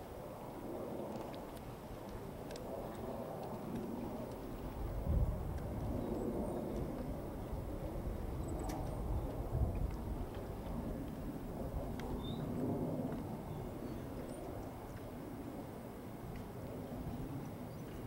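Water laps gently against the pier posts.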